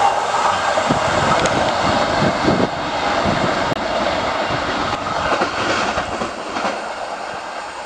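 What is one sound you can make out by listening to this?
A train rumbles away along the tracks and fades into the distance.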